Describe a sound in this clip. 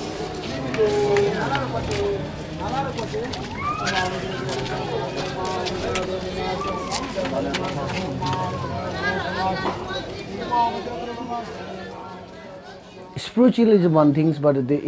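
Metal prayer wheels rattle and creak as a man turns them by hand.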